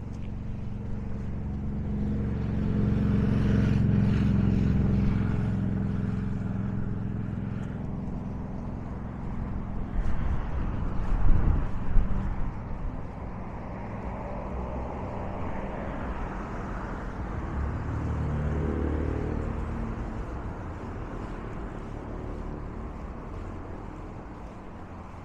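Waves wash and splash against a sea wall.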